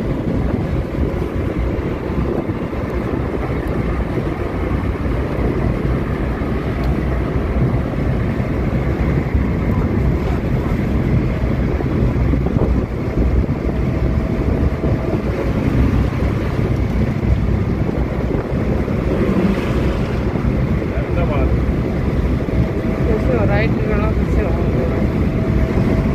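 A small van's petrol engine hums as it cruises on a highway, heard from inside.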